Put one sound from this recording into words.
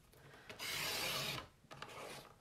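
A paper trimmer blade slides along, cutting through card.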